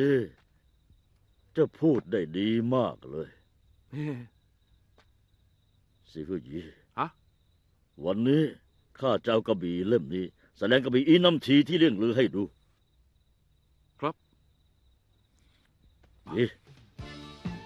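A man speaks in a low, serious voice close by.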